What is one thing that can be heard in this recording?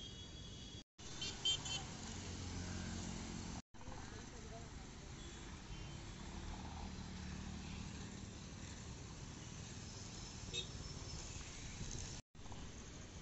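Motorbikes and cars drive past on a busy road.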